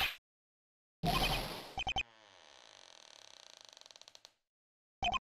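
A door bumps and creaks.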